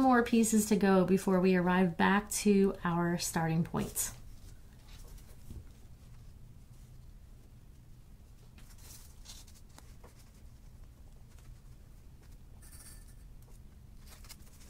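Paper rustles softly as fingers press it onto a ball.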